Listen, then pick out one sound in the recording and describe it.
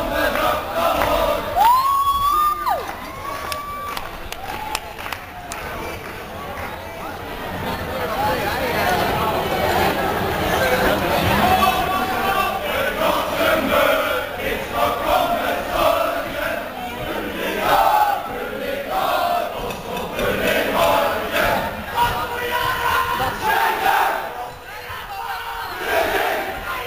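A choir of women sings together in a large hall.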